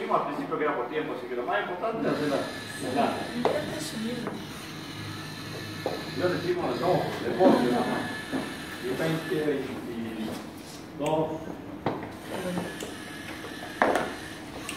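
A small robot's electric motors whir as it rolls across a wooden floor.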